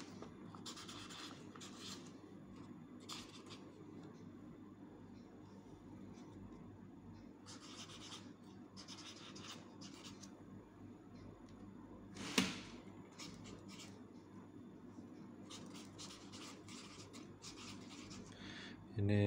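A felt marker squeaks and scratches across paper.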